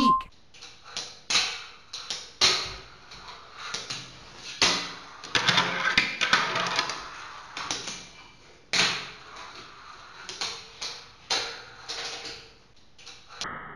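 Fingerboard wheels roll across a stone countertop.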